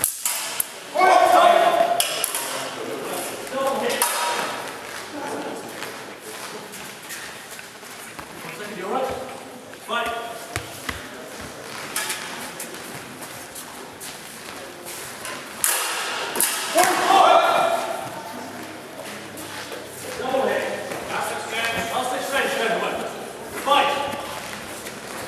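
A man calls out in an echoing hall.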